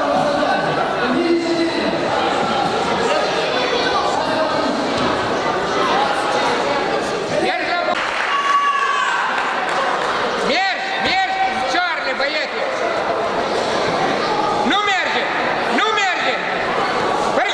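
A crowd of spectators chatters in a large hall.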